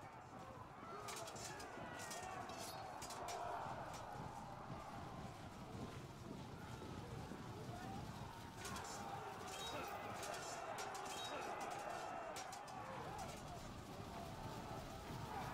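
Weapons clash and clatter in a busy battle.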